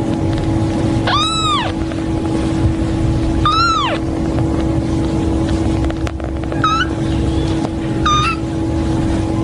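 A tiny kitten mews in high, thin cries.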